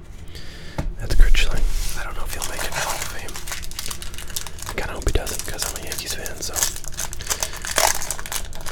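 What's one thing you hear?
Plastic wrappers crinkle as packs are moved about.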